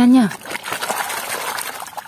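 Water splashes in a tub.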